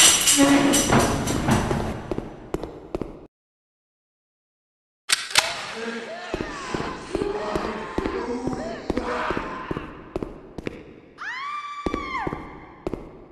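Footsteps thud on a hard floor in an echoing space.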